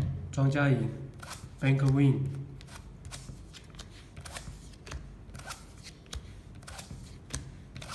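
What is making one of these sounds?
Cards are pulled out of a plastic card shoe.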